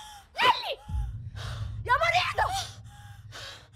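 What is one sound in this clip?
A young woman screams close by.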